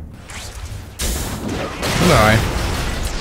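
A web shoots out with a sharp swish.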